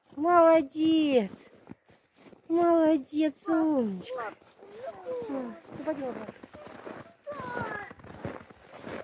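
A dog whines and yelps with high, sliding cries.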